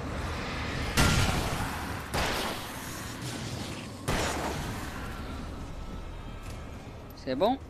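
A loud blast booms and rumbles away.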